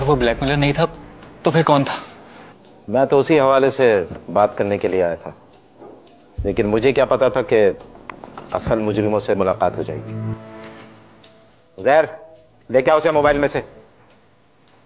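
Men speak close by.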